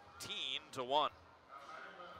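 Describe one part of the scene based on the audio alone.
Young men shout and cheer nearby.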